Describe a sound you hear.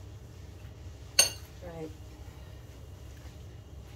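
A whisk scrapes and taps against a glass bowl.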